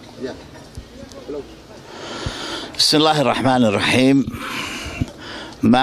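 A man speaks calmly and close into a handheld microphone.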